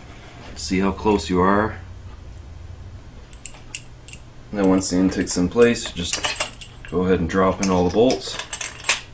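A man talks nearby in short bursts.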